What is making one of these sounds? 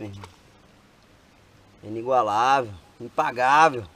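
Water splashes as a fish is released.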